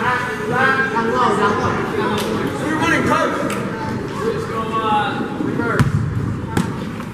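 Young players and spectators chatter in a large echoing gym.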